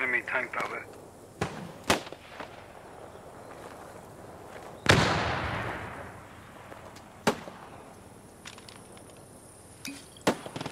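Leafy branches rustle as someone pushes through a bush.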